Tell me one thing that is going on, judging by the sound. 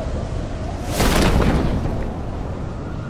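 A parachute snaps open with a sudden loud whoosh.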